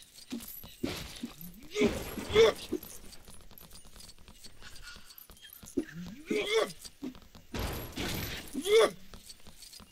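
Small coins chime brightly as they are picked up.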